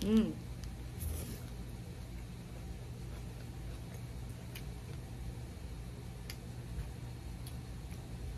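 A young woman bites and chews a crispy pancake.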